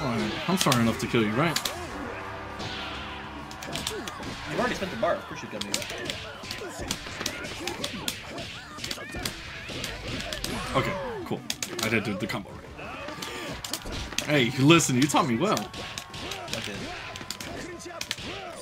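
Punches and kicks land with sharp smacks and thuds in quick bursts.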